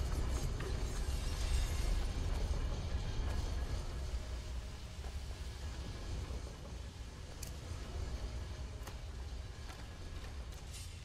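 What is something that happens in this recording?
Footsteps in armour run over stone.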